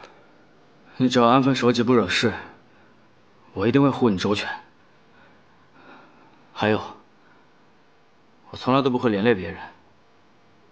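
A young man speaks in a strained, pained voice, close by.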